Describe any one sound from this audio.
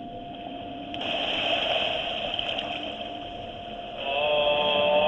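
Waves wash up onto a sandy shore.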